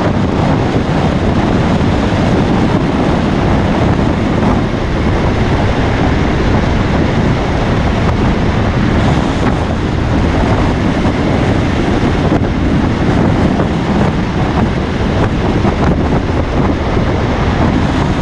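Wind rushes past the moving vehicle.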